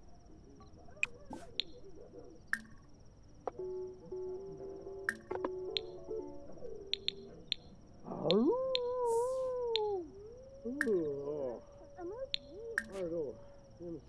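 Soft clicks sound as menu options are chosen.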